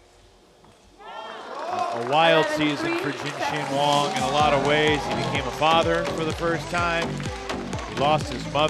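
A crowd cheers and claps loudly.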